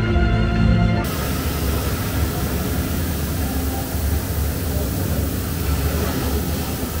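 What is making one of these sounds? The sound of ocean waves rushes steadily through loudspeakers.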